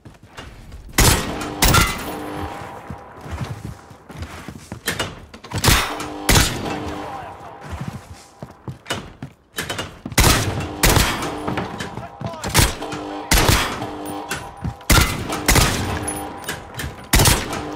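A scoped rifle fires single shots.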